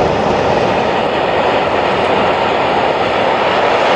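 A rally car engine roars in the distance as the car speeds past.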